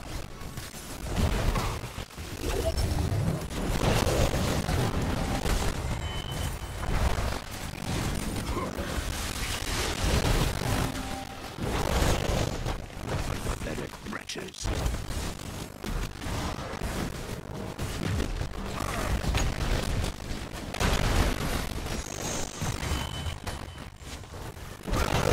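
Video game battle sound effects clash, with magic spells crackling and bursting.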